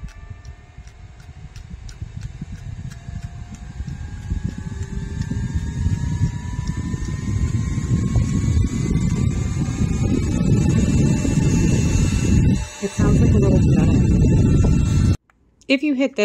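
A small electric fan whirs, rising in pitch and growing louder as it speeds up.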